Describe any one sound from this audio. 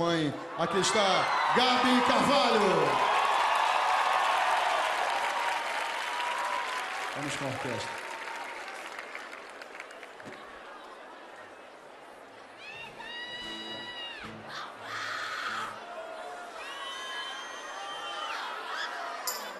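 A crowd applauds.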